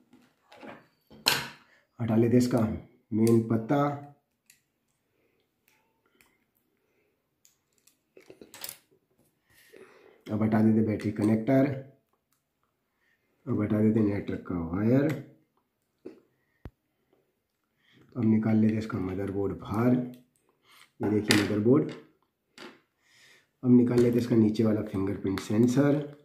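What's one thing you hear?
Small plastic parts click and tap against one another.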